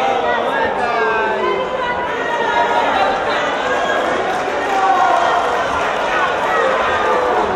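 A large crowd chatters and calls out in a big echoing hall.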